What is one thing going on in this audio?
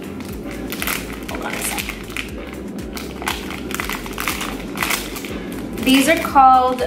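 A plastic wrapper crinkles and rustles close up.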